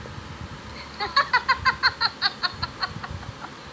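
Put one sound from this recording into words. A young boy laughs in quick bursts.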